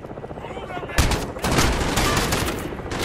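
A rifle fires a short burst of loud shots.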